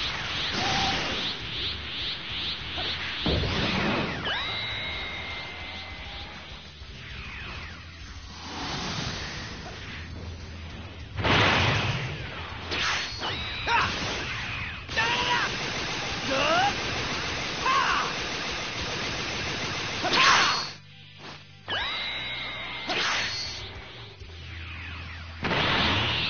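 Video game blasts, whooshes and energy bursts crackle loudly.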